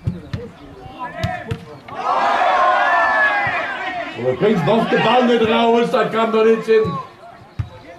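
Men shout loudly outdoors across a field.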